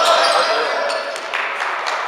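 A basketball bounces on a gym floor.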